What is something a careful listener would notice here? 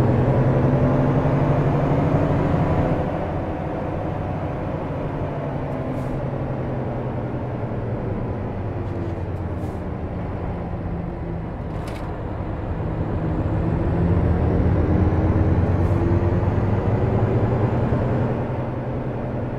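A truck engine rumbles steadily, rising and falling as it drives.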